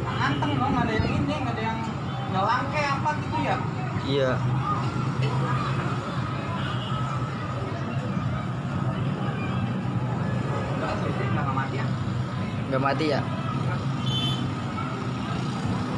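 Motorbike engines rumble steadily nearby.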